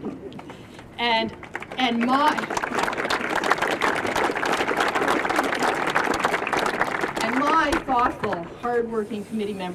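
Several people whoop and cheer loudly.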